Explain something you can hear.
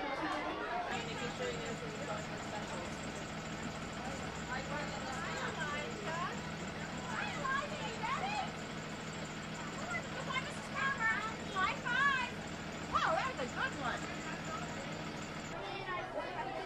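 A school bus engine idles nearby.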